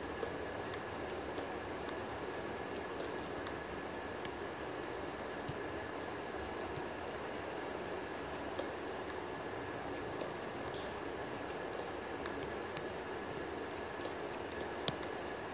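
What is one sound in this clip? Pickaxe blows crunch on stone, over and over.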